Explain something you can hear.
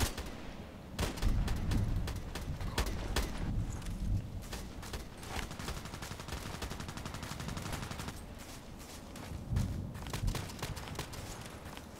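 Footsteps thud through grass.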